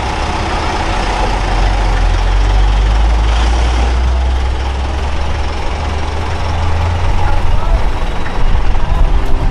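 A car engine idles with a low rumble.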